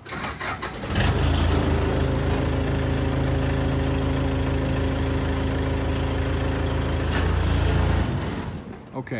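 A forklift engine idles with a steady low hum.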